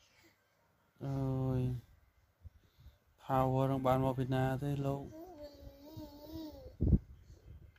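A baby babbles and squeals nearby.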